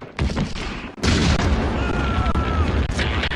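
A large explosion roars.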